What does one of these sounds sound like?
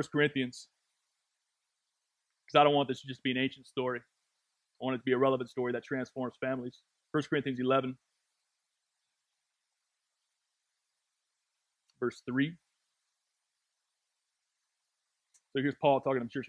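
A man speaks calmly into a microphone, in short phrases with long pauses.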